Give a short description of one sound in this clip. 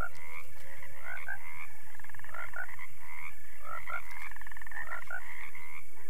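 A toad croaks nearby.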